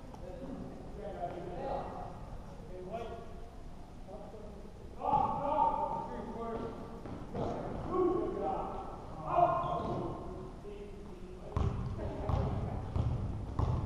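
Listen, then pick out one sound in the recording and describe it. Spectators talk in a large echoing hall.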